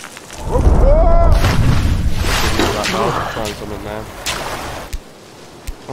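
A body splashes heavily into water, followed by churning bubbles.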